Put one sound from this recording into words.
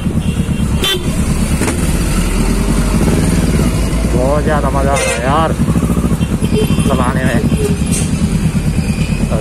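A parallel-twin sport motorcycle engine thrums as it rides slowly through traffic.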